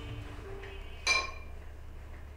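A spoon clinks against a ceramic bowl.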